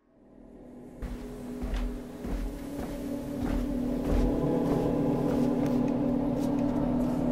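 Footsteps thud down wooden stairs.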